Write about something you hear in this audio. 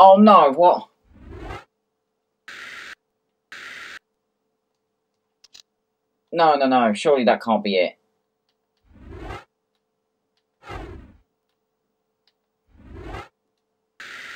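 A game menu opens and closes with soft whooshing sounds.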